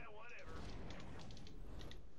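Sci-fi weapons blast and crackle in a battle.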